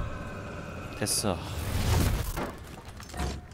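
A punch lands with a heavy thud.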